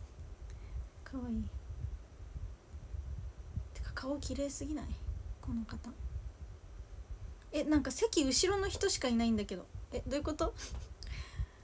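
A young woman speaks casually in short bursts, close to a microphone.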